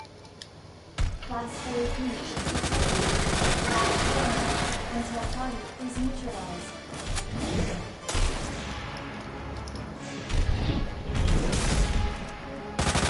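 A monster roars and growls loudly.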